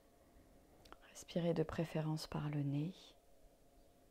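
A middle-aged woman speaks briefly and calmly through a close microphone.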